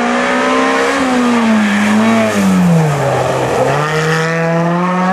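A rally car roars past close by.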